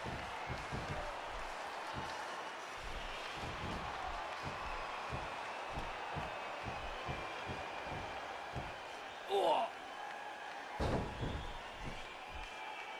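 Heavy bodies thud repeatedly against a wrestling ring mat.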